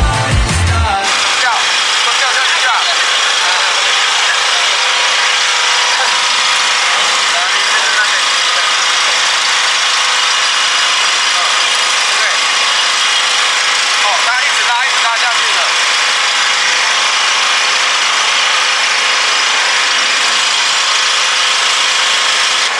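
Heavy rain hisses steadily outdoors.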